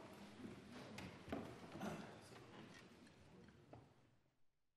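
Seats and desks knock softly in a large echoing hall.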